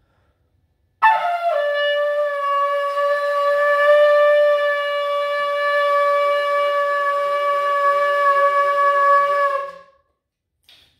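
A ram's horn blows one long, steady, loud note.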